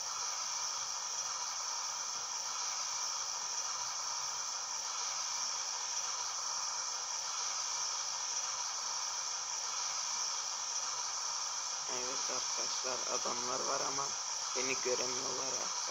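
Wind rushes past during a free fall in a video game.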